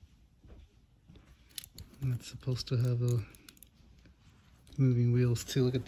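A small metal toy car clicks softly as it is handled.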